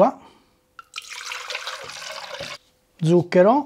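Water pours into a glass jug.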